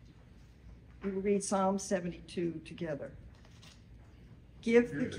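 An elderly woman reads aloud calmly in a room with a slight echo.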